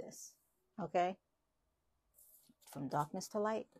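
Playing cards slide softly against each other.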